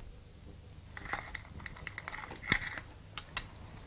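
Dishes clink as they are set down on the floor.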